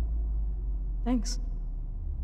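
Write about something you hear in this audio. A young woman speaks briefly and softly.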